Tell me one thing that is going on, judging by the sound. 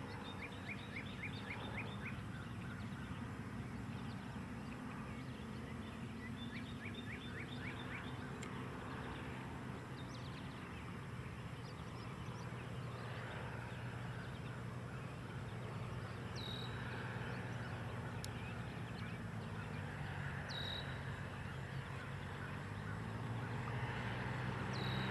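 A small propeller plane drones overhead, growing louder as it approaches.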